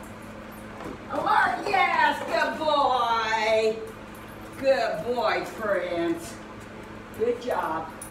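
A middle-aged woman speaks with animation, close by, in a high, lively voice.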